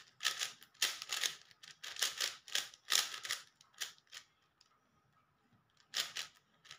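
A puzzle cube clicks and rattles in quick bursts as its layers are turned.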